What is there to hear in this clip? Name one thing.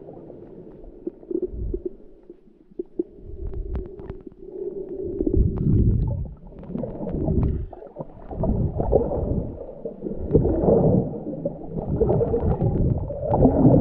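Water swirls and rushes in muffled, uneven surges, heard from underwater.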